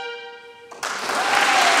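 A violin holds a final note and stops.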